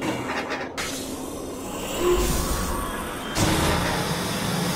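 A heavy metal door slides open with a hiss.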